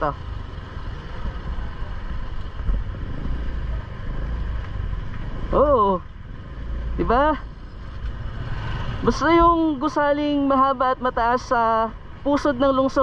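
A motorbike engine rumbles steadily up close.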